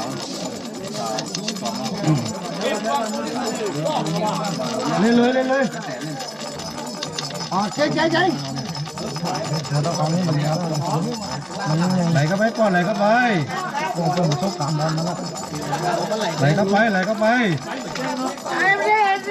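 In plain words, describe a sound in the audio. Several men talk and call out excitedly close by.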